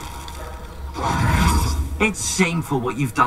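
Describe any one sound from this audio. A spell bursts with a loud crackling whoosh.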